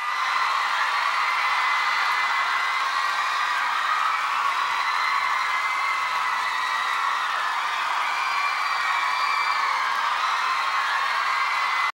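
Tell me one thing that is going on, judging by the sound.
Young men sing through headset microphones.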